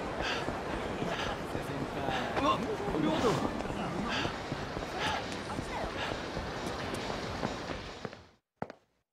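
A crowd murmurs in a busy street.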